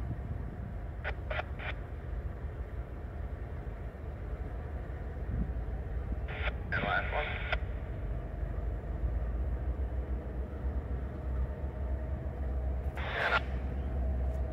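A train horn sounds in short blasts in the distance.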